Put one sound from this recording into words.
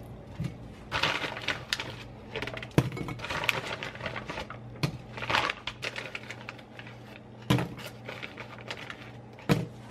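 Dry pasta rattles and pours from a plastic bag into a pot.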